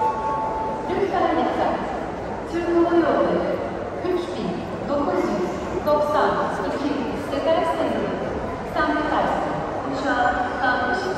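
Adult men and women talk with animation close by.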